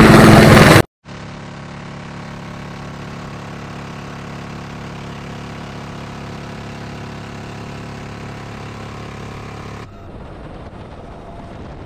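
A helicopter engine drones steadily from inside the cabin.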